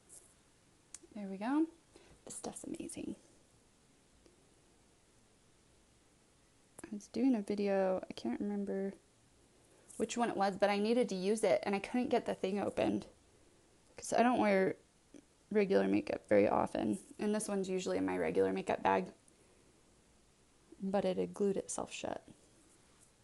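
A young woman speaks softly and close to a microphone, in short bursts.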